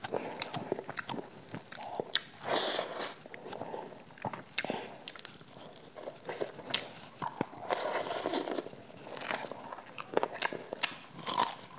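A young woman chews and smacks her lips loudly close to a microphone.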